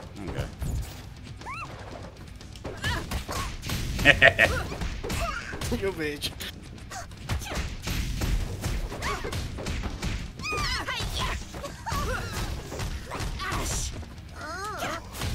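Cartoon punches and kicks land with rapid thuds and smacks.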